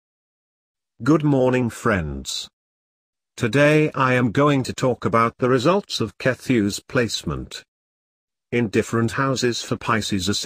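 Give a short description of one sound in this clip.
A man speaks calmly into a microphone, in short bursts with pauses.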